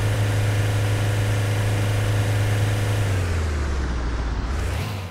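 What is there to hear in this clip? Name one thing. A car engine hums steadily, then drops in pitch.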